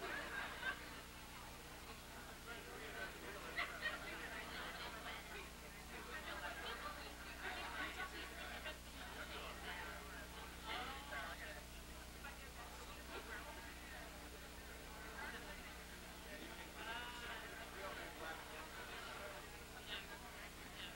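A crowd of men and women chatter all around in a large room.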